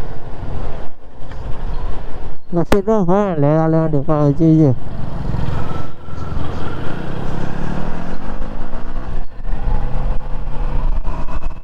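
A motorcycle engine hums and revs while riding.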